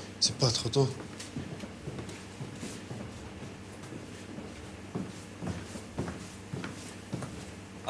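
Boots tread on a hard floor as men walk closer.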